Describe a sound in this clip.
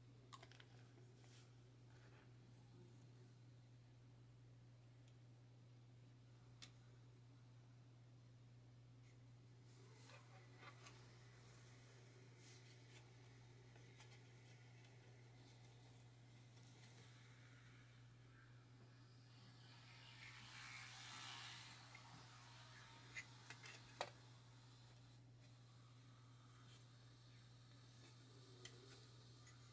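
Small plastic parts tap and click softly as hands handle them close by.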